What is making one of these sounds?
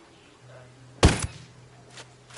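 A rifle fires a single sharp shot.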